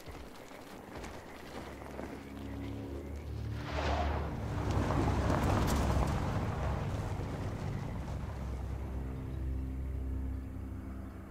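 A car engine rumbles low as a vehicle drives off.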